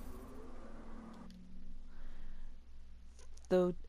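A soft click sounds as a menu opens.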